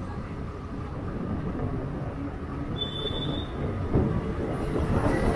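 A lorry's engine rumbles close by.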